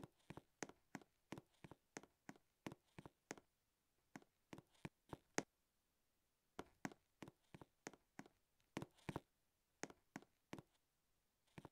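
Game footsteps patter quickly as a character runs.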